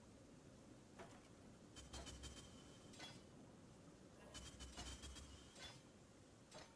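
Short game interface clicks and chimes sound as items are moved around.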